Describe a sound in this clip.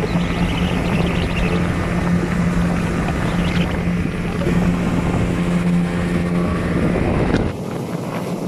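A boat engine drones steadily at close range.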